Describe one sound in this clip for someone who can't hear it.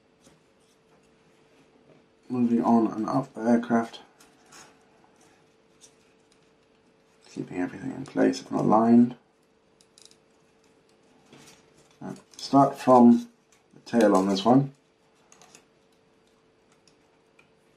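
Thin wooden strips click and tap softly as they are handled.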